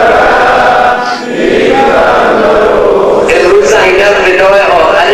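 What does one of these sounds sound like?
A man chants loudly into a microphone, his voice carried over loudspeakers.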